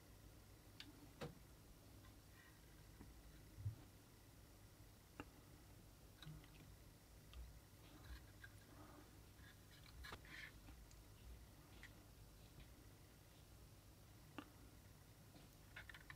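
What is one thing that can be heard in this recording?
Small plastic devices click and tap softly.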